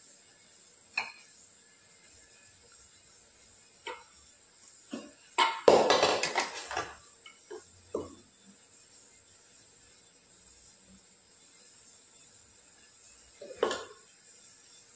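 A spoon clinks against a metal dish.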